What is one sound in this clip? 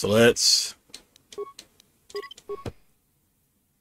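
Short electronic beeps sound as menu options are selected.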